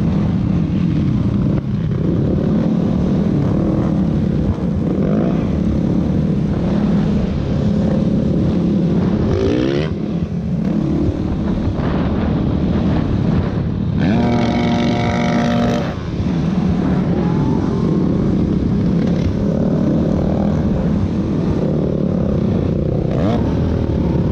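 Other dirt bikes and quad bikes buzz nearby.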